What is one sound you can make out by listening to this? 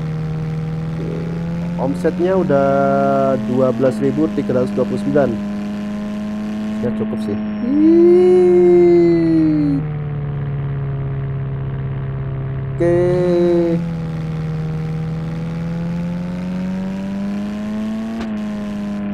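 A van engine hums steadily, its pitch rising and falling as it speeds up and slows down.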